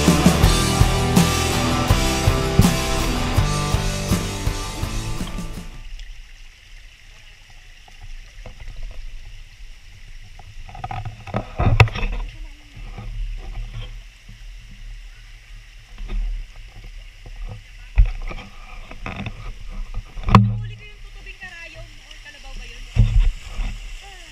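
A shallow stream splashes and gurgles over rocks.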